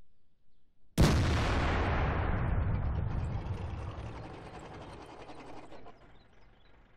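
A tank cannon fires with a sudden loud boom that rumbles and slowly fades.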